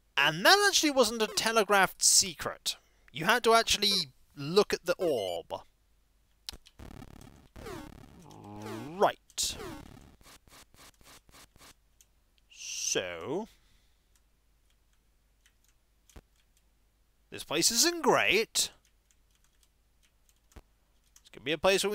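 Electronic video game sound effects chirp and beep.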